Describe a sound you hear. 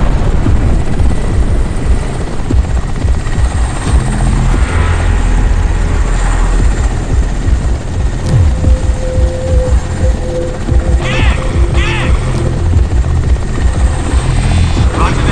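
A helicopter's rotor thumps and roars steadily, close by.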